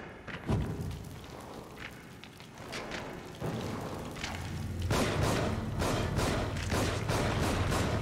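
A fire roars and crackles close by.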